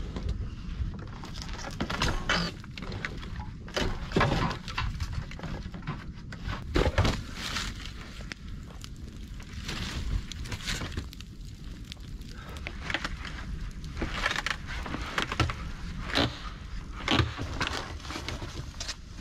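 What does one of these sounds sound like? Logs knock and thud against each other.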